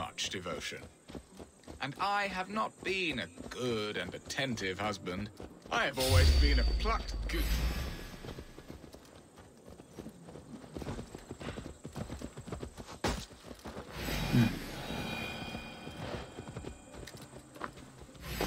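Horse hooves thud on a dirt track.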